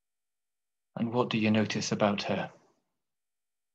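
An older man speaks briefly through a computer microphone on an online call.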